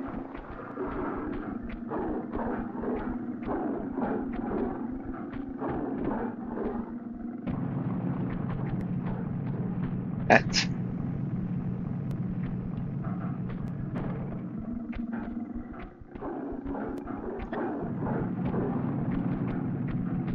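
Footsteps run quickly over snow.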